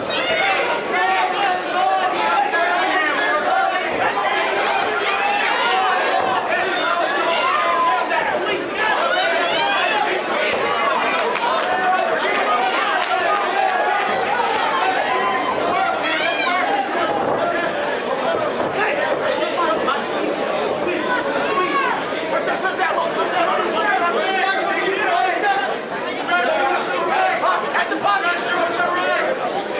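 A crowd in a large echoing hall cheers and shouts.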